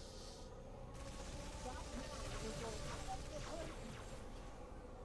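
An energy weapon fires with sizzling blasts.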